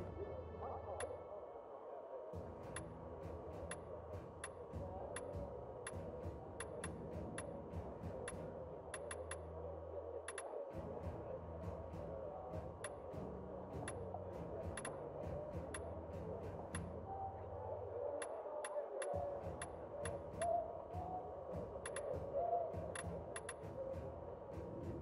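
Short, soft menu clicks tick again and again as selections change.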